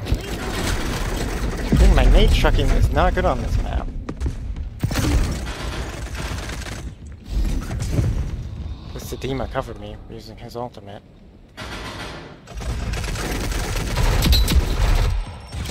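Gunfire bursts rapidly from a submachine gun.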